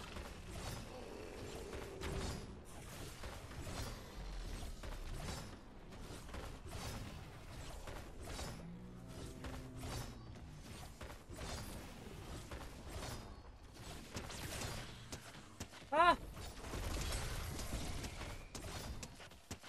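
Gunshots and game effects crackle and boom.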